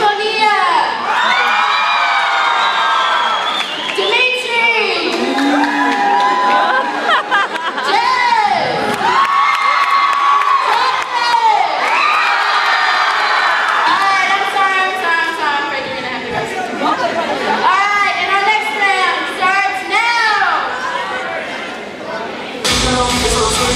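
A young woman sings through a loudspeaker, echoing in a large hall.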